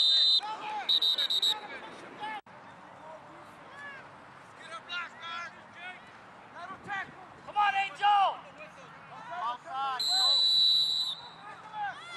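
A referee's whistle blows sharply outdoors.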